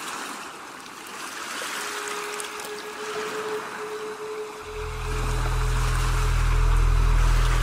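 Waves break and wash up onto a beach.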